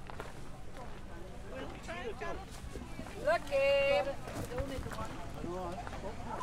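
Men and women chat at a distance outdoors.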